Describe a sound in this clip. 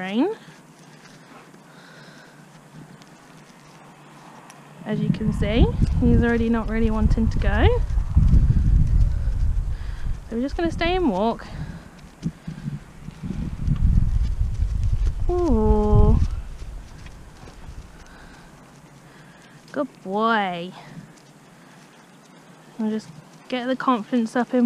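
A pony's hooves thud softly on grass as it trots.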